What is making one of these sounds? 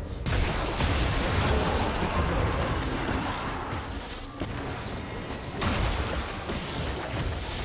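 Video game spell effects whoosh and clash in a busy battle.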